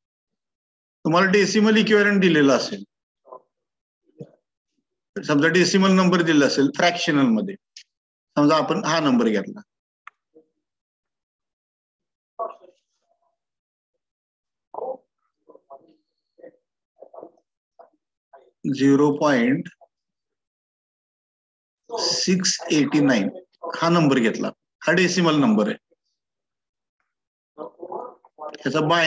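A man speaks calmly and explains over an online call, with pauses.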